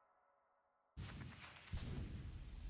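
A sudden bright whoosh bursts out loudly.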